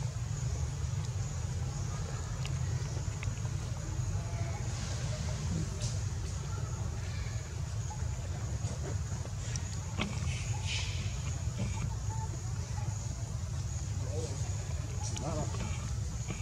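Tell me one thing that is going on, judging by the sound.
A baby monkey squeaks softly close by.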